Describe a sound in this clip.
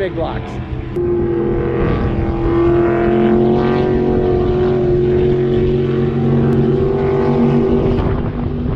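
A speedboat engine roars steadily across the water.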